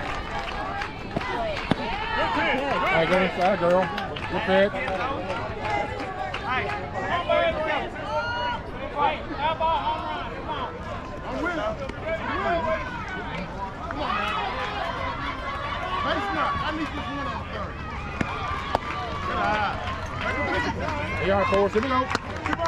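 Young women and girls chatter and shout nearby and across an open field.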